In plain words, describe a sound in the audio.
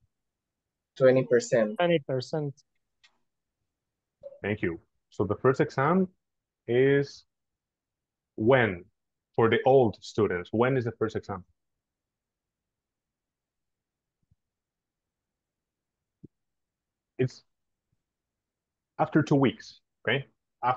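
A man speaks calmly over an online call, in short phrases with pauses.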